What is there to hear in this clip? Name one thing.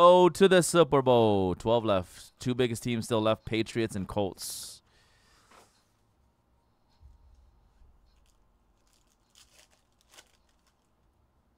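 A foil card pack crinkles as hands tear it open.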